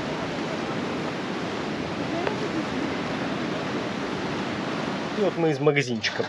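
Waves wash steadily over rocks on a shore.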